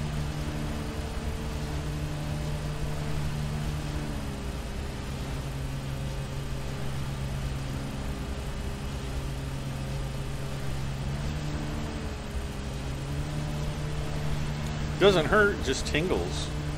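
A mower engine hums steadily, its pitch rising and falling as it drives.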